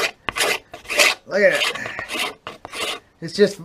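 A knife shaves and scrapes wood.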